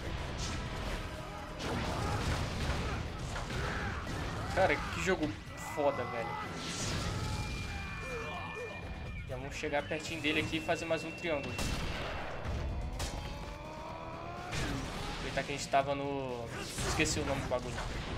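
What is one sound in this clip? Game combat sounds crash and whoosh.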